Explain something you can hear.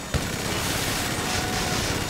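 A minigun fires.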